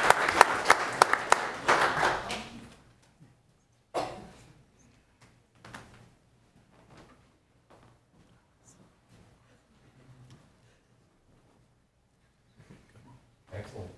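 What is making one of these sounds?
A crowd claps and applauds in a large hall.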